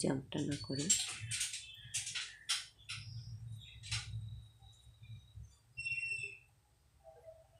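A woman speaks softly, close by.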